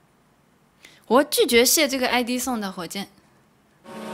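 A young woman speaks brightly into a microphone, close by.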